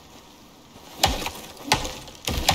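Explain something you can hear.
An axe chops into a tree trunk with loud thuds.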